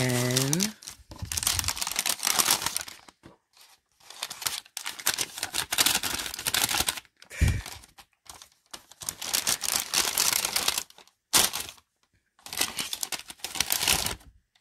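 A paper bag crinkles and rustles as it is handled and folded.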